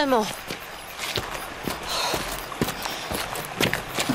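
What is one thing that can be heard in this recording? Footsteps scuff on hard ground nearby.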